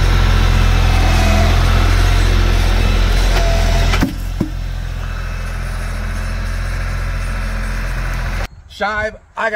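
A tractor engine rumbles loudly and steadily.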